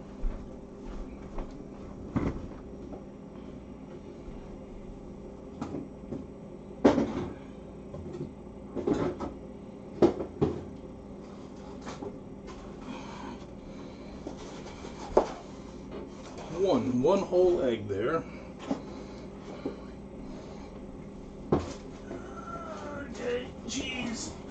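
A pot of soup simmers with soft bubbling.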